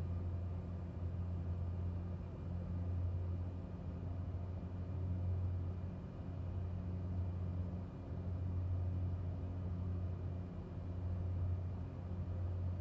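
A small propeller aircraft's engine drones steadily from inside the cockpit.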